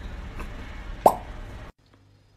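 A young woman exclaims briefly, close by.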